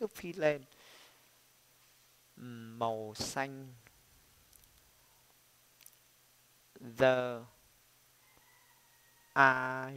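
A young man speaks into a microphone close by, pronouncing words slowly and clearly.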